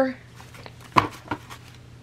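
Paper pages rustle as they are flipped.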